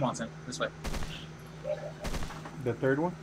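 Rifle shots crack nearby.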